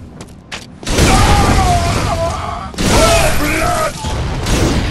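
A creature shrieks in pain.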